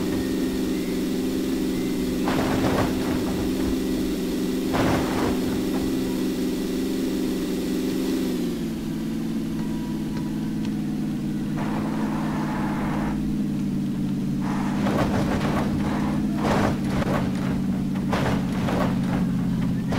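A car engine drones steadily as it drives.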